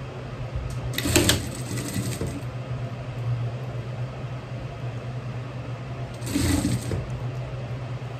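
A sewing machine stitches in short bursts.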